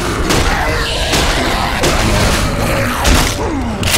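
A blunt weapon thuds against bodies.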